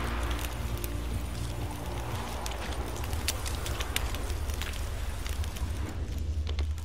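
Footsteps crunch through dry grass and leaves.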